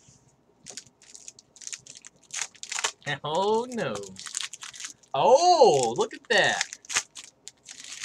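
A foil card pack is torn open with a crinkle.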